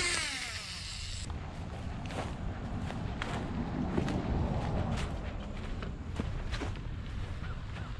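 Footsteps crunch over grass.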